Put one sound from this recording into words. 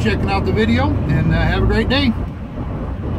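A man speaks calmly inside a vehicle.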